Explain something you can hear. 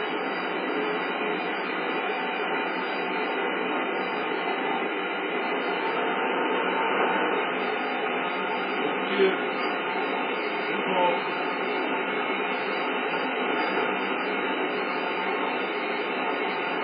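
A train rumbles steadily along the rails, heard through a television speaker.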